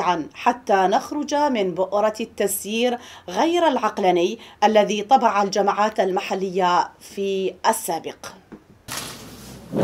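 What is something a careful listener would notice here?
A woman speaks clearly and evenly into a microphone.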